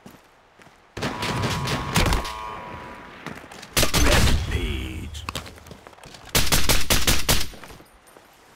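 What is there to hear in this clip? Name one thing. Rifle shots crack in loud bursts.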